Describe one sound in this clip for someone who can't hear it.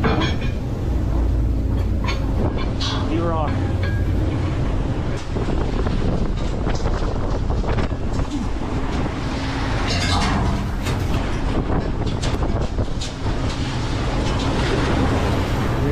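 An engine rumbles low and steady.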